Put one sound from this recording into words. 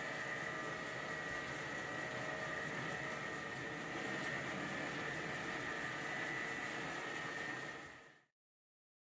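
A metal lathe whirs steadily as a cutting tool shaves a spinning metal part.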